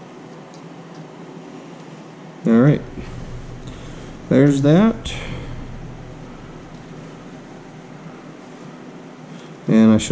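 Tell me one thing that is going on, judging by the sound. A plastic trim piece rattles and clicks softly as it is handled.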